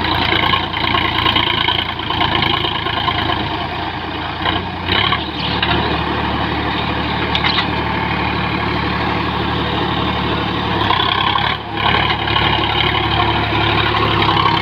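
A rotary tiller churns through dry soil.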